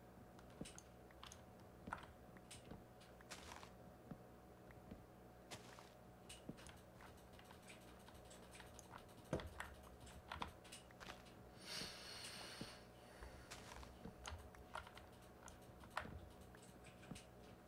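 Wooden blocks are chopped with short knocking thuds.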